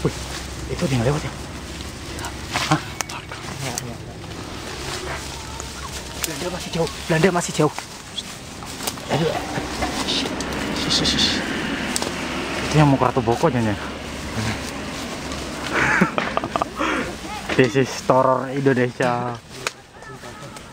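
A young man talks and laughs close by, outdoors.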